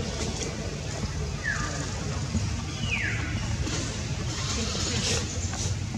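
Leaves rustle as a monkey climbs through a tree.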